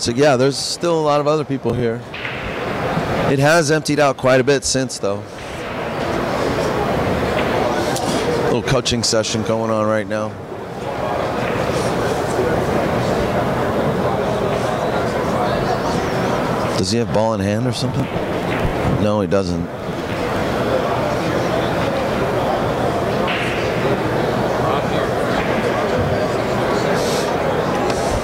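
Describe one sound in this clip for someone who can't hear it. Crowd murmur fills a large echoing hall.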